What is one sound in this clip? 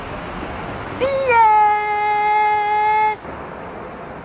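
A boy shouts loudly close by.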